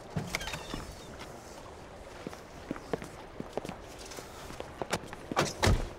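Footsteps tap on wet concrete.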